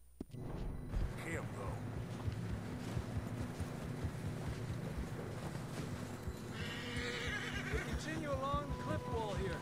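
Horse hooves plod through snow.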